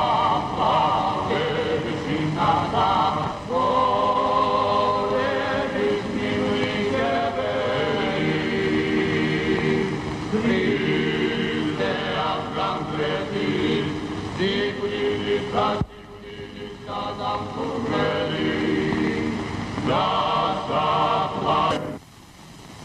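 A young man sings loudly and with feeling.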